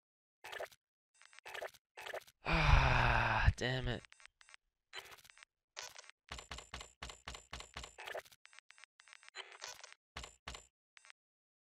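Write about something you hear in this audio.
Short electronic menu clicks and beeps sound in quick succession.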